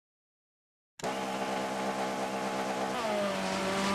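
A turbocharged four-cylinder rally car engine idles.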